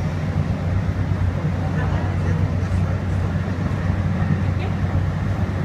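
A vehicle engine rumbles steadily as the vehicle rides along.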